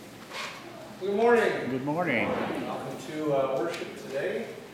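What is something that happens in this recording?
A man speaks calmly in a large echoing room.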